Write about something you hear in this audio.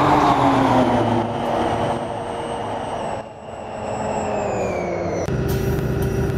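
A bus engine's whine falls in pitch as the bus slows to a stop.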